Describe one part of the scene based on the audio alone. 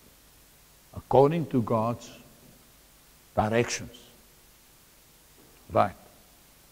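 A middle-aged man speaks with animation in short bursts.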